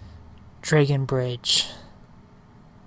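A young man speaks briefly and loudly into a close microphone.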